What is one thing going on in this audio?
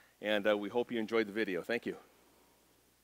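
A man speaks calmly and clearly into a microphone, close by.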